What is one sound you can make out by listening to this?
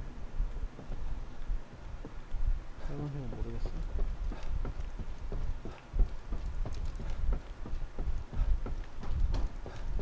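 Footsteps thud quickly on a wooden floor.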